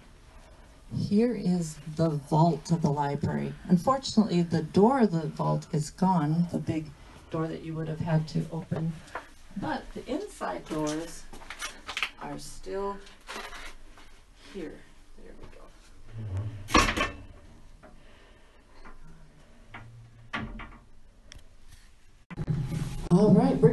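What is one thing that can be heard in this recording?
An older woman talks with animation into a handheld microphone.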